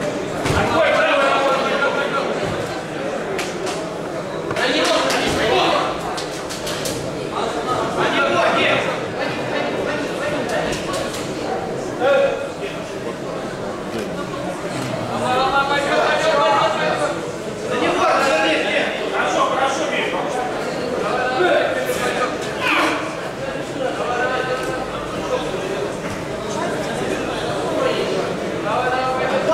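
People chatter and call out nearby in an echoing hall.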